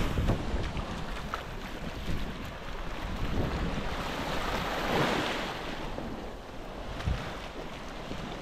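A child splashes through shallow water.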